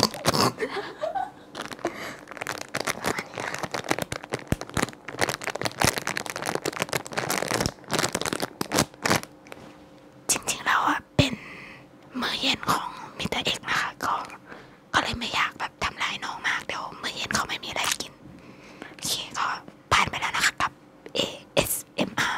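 A young woman talks cheerfully close to a microphone.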